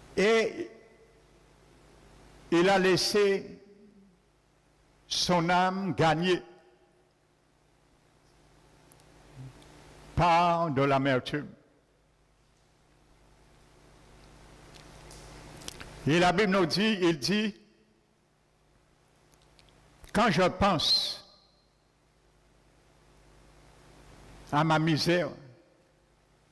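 A man speaks slowly and deliberately through a microphone in an echoing hall, pausing between phrases.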